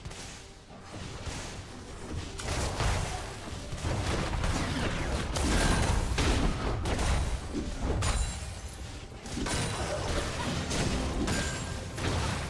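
Video game spell and weapon effects crash and burst in a hectic battle.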